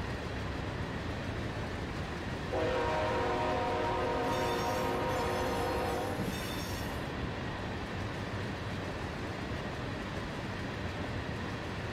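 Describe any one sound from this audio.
Freight cars rumble and clatter along the rails.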